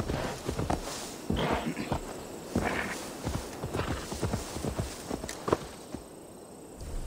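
A horse's hooves thud steadily on soft ground.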